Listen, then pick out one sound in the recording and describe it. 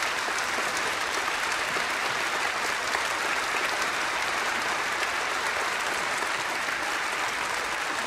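A large crowd cheers and applauds loudly in a big echoing hall.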